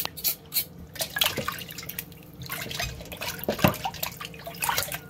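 A knife scrapes against meat.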